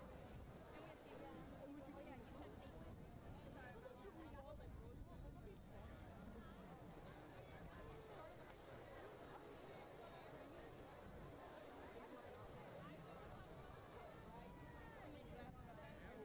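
A large outdoor crowd chatters and murmurs throughout.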